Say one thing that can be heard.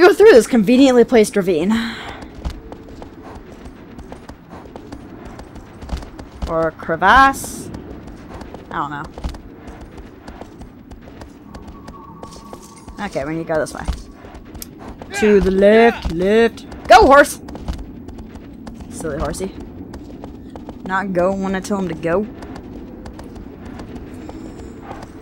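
A horse gallops, its hooves thudding on the ground.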